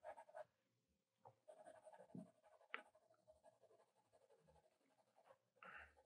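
A pencil scratches and scrapes on paper.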